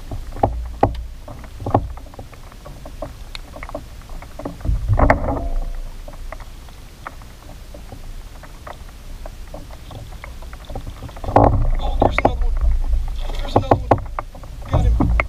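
A fishing reel clicks as a man winds in line.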